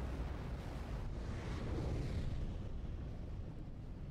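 A rocket engine roars loudly with a deep rumble.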